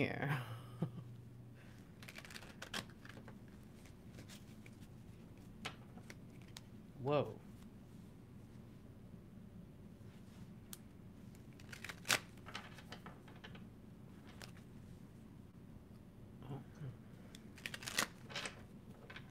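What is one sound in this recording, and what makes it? Playing cards are shuffled and flicked with soft papery riffles.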